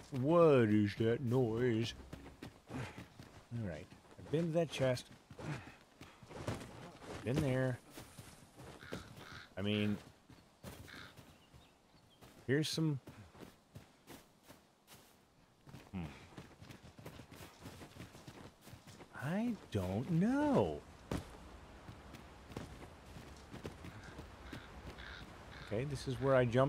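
Footsteps tread on grass and stone.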